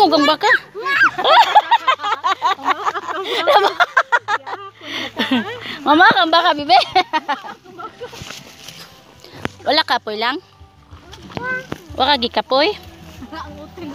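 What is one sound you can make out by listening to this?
A young girl talks with animation close by.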